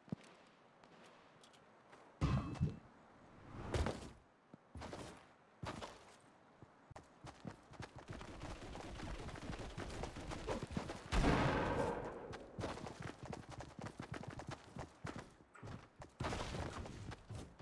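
Quick footsteps patter over grass and soil.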